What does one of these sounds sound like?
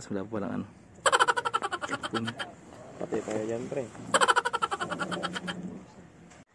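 A young man laughs in bursts close by.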